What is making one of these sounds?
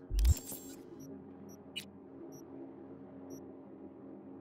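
Short electronic menu beeps chime as options are selected.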